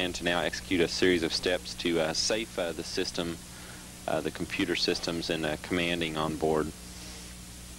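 A man speaks calmly over a radio link.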